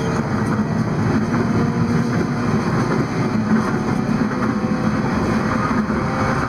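A train rumbles steadily at speed, heard from inside a carriage.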